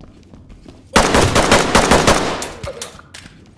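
A rifle fires a rapid burst of shots that echo down a hallway.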